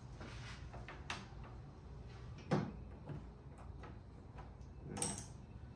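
A plastic fastener snaps and clicks into place.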